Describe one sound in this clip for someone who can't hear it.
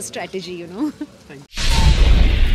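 A young woman speaks cheerfully into close microphones.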